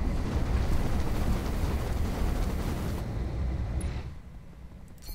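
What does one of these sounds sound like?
A heavy walking machine stomps across the ground.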